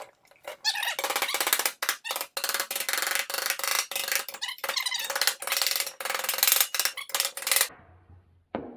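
Metal snips cut through thin sheet metal with a rasping screech.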